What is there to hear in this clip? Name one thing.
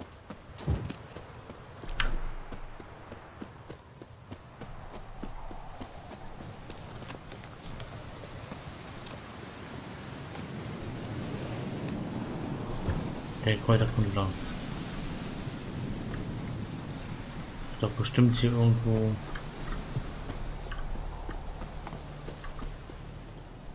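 Footsteps rustle through grass at a quick walk.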